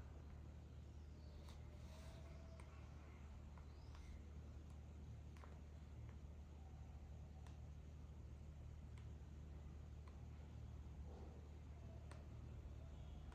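A candle flame sputters and crackles close by.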